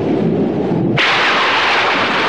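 Thunder cracks suddenly and loudly.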